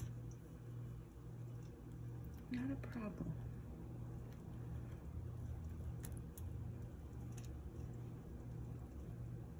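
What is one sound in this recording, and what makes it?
A knife scrapes softly as it spreads a filling on bread.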